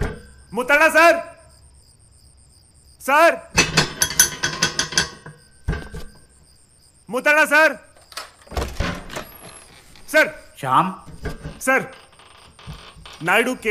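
A man calls out loudly and urgently, close by.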